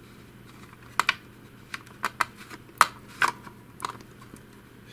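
Plastic parts click and rattle as hands turn a roller shaft.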